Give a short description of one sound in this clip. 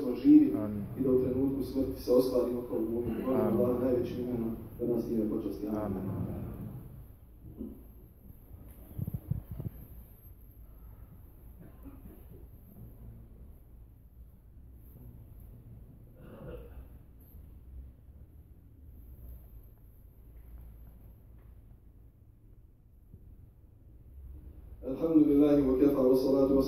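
A man speaks calmly into a microphone, heard through a loudspeaker in a large echoing hall.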